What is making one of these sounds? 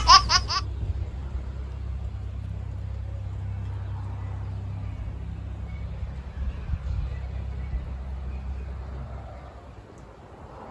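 Wind blows outdoors with a low rumble.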